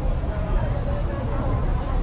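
A bus engine idles close by.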